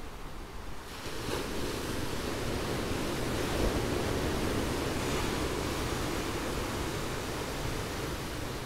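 Ocean waves crash and wash over rocks close by.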